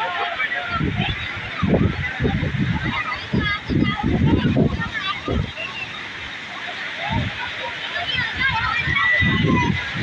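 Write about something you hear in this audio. A crowd of people chatter and call out nearby outdoors.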